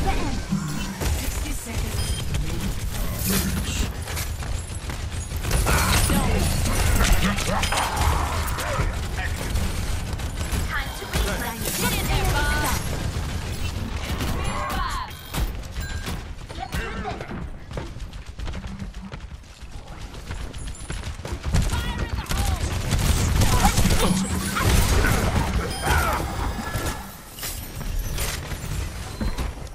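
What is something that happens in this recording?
Gunshots blast rapidly and heavily in a game.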